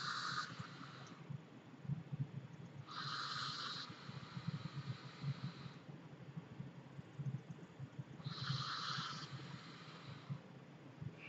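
A vape atomizer coil sizzles as a man draws on it.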